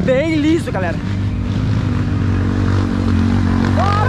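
A motorcycle engine rumbles nearby.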